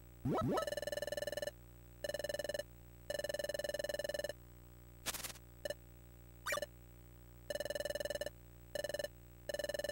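Rapid electronic beeps chirp in quick bursts.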